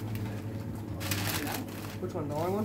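Wrapping paper rustles and tears close by.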